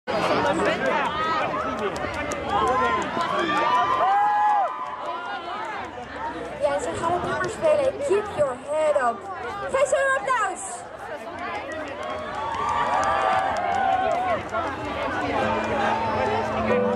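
A large outdoor crowd chatters and calls out.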